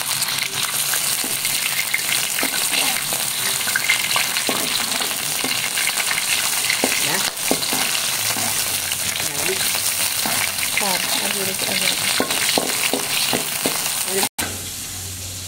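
Shrimp sizzle and crackle in hot oil.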